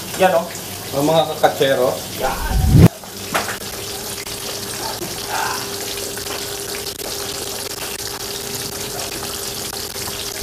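Fish sizzle in hot oil in a pan.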